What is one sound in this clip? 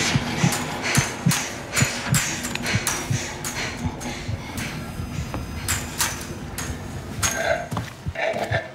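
Footsteps clang steadily on a metal floor.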